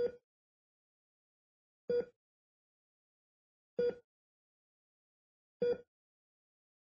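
A heart monitor beeps at a steady pace.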